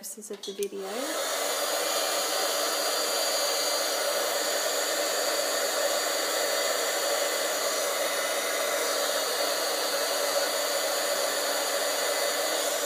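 A heat gun blows with a steady, loud whir.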